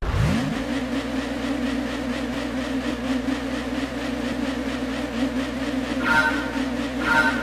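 Racing car engines idle and rev with a steady buzzing drone.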